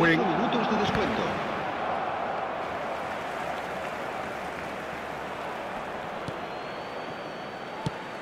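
A large crowd roars steadily in a stadium, slowly growing quieter.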